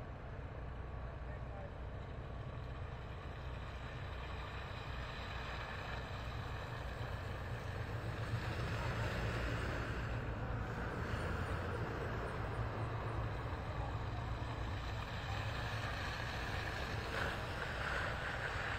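Cars and trucks drive slowly past, tyres hissing through wet slush.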